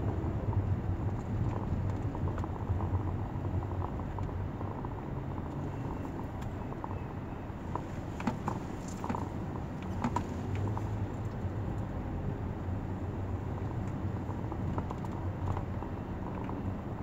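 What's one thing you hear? A car engine hums steadily from inside the car while it drives.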